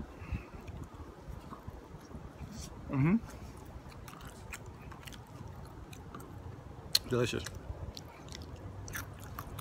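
A man chews food with soft mouth sounds.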